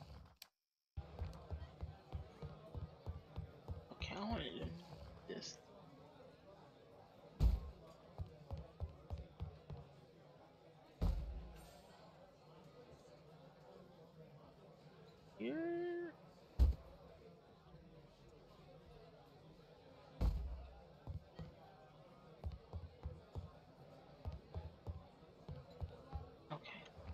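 Footsteps tap quickly across a wooden floor.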